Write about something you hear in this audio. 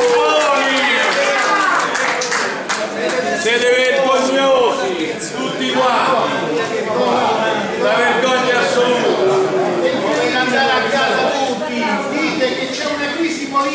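A crowd of men and women talk loudly over one another in an echoing room.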